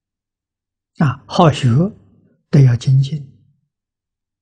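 An elderly man speaks calmly and slowly, close to a microphone.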